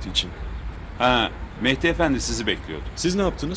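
A middle-aged man answers calmly close by.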